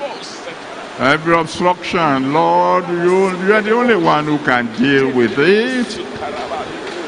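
A man sings loudly through a loudspeaker.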